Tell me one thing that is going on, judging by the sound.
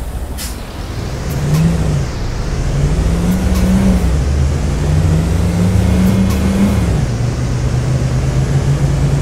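A bus engine revs up and down as the bus pulls away.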